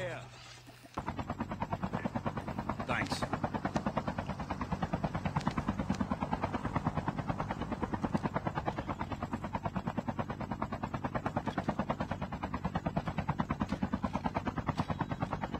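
A helicopter's rotor thumps rapidly and steadily.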